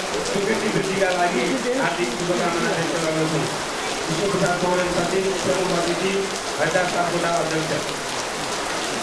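A man reads out aloud through a microphone.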